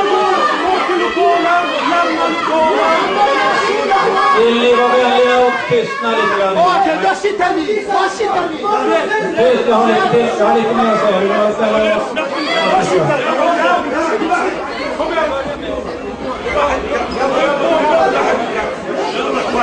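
A crowd of men shouts and argues loudly in an echoing hall.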